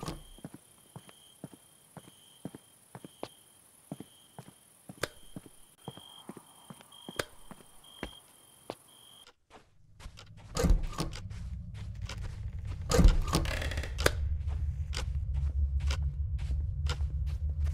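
Footsteps thud steadily on wooden boards and steps.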